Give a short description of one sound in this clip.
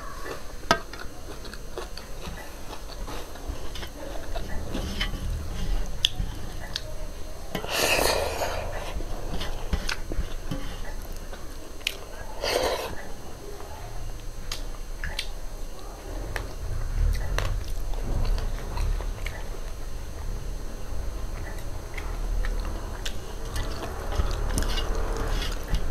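A woman chews food loudly close to a microphone.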